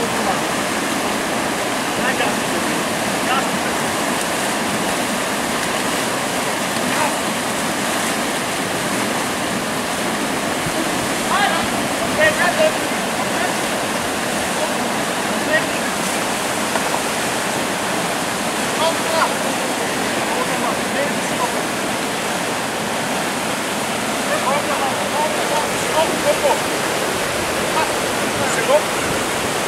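River rapids roar and rush steadily.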